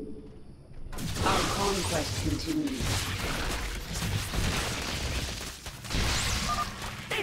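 Electric bolts crackle and zap loudly.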